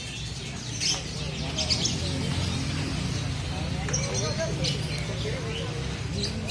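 Several men talk and call out outdoors.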